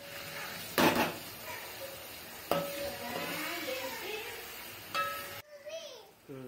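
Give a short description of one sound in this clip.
Vegetables sizzle in hot oil.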